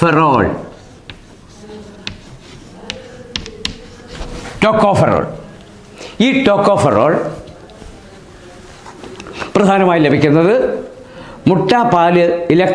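An elderly man speaks slowly, in short phrases with pauses.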